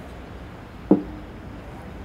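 A glass clinks against a table.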